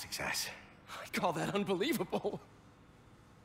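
A young man speaks in a friendly way.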